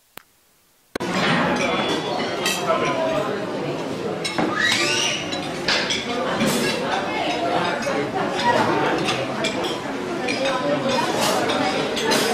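A crowd of people chatters indoors.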